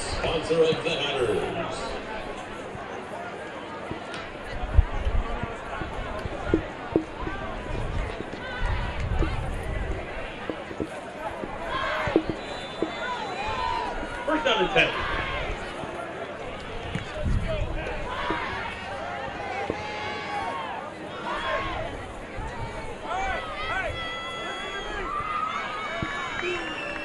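A crowd murmurs and cheers in an open stadium.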